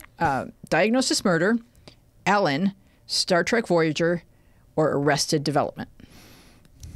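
A woman speaks with animation into a close microphone.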